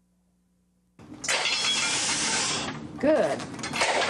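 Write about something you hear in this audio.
A woman speaks encouragingly nearby.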